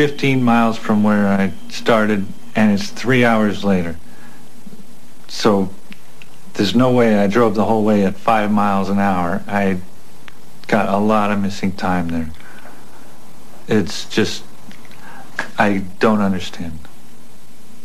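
A middle-aged man speaks calmly and earnestly, close by.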